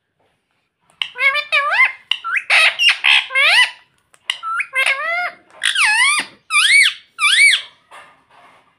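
A parrot squawks and chatters loudly in rising and falling calls, close by.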